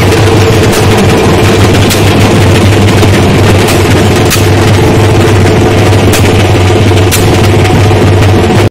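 Fireworks burst with sharp pops and crackles overhead.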